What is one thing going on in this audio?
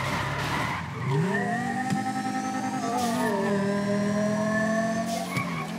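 A car engine roars and rises in pitch as it speeds up.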